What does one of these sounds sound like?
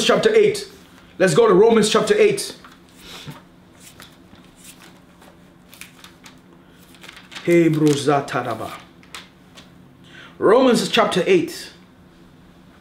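Paper rustles softly in a man's hands.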